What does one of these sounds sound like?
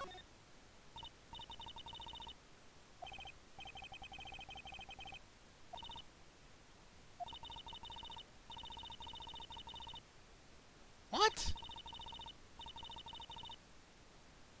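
Electronic video game text blips chirp in rapid runs.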